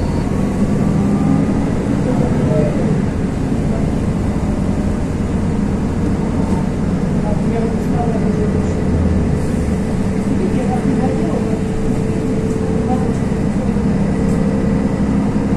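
A vehicle's engine hums steadily from inside as it drives.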